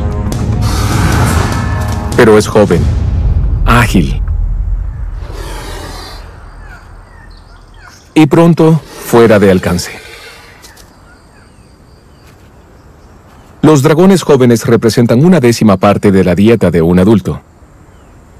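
Lion cubs growl and mewl close by.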